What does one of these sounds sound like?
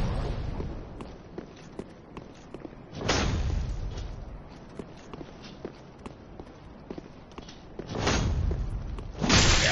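Armored footsteps clank steadily on stone.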